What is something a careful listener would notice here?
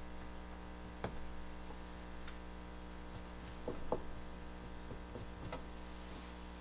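Clay objects knock and scrape softly on a hard surface.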